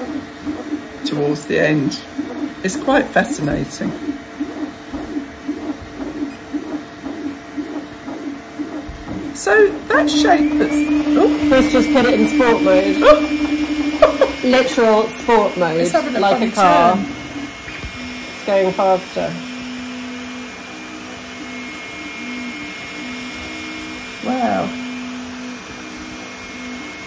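A 3D printer's motors whir and buzz with steady pitched tones.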